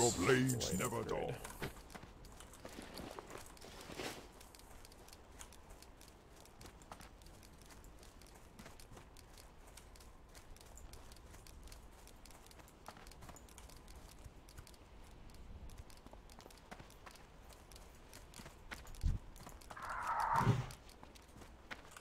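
Footsteps patter softly on dry ground.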